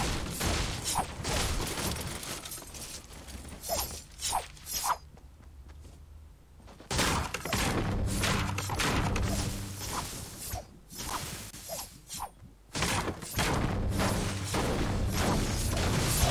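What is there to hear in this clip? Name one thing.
A pickaxe strikes wood again and again.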